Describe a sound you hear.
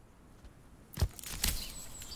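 A short interface click sounds as a menu opens.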